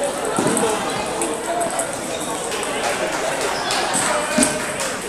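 Table tennis balls click on tables and paddles in a large echoing hall.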